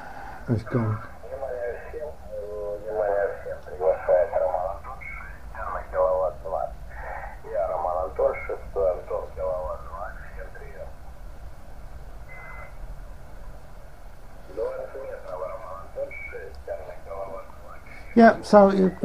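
A voice talks over a small radio loudspeaker, thin and muffled.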